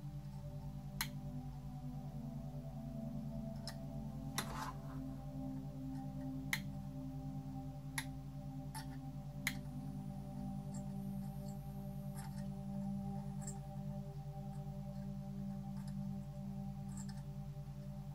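Small clicks and taps sound as hands handle wires and a soldering iron.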